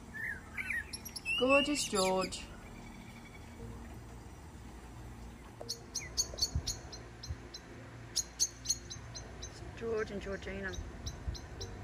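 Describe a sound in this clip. A bird sings a warbling, fluting song nearby.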